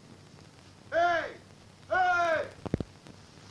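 A donkey brays loudly twice.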